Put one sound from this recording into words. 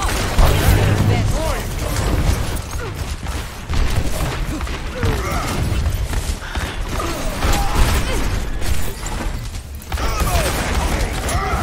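Rapid energy weapons fire and crackle.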